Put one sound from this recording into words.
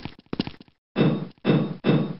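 Footsteps clang loudly on metal stairs.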